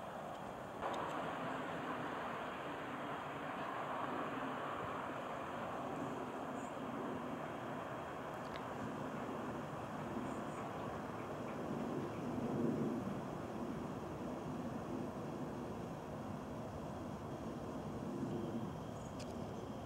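Wind rustles through the leaves of trees outdoors.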